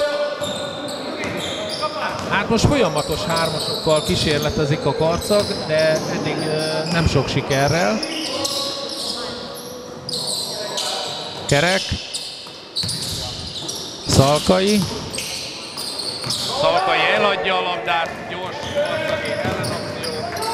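Players shout to one another across the gym.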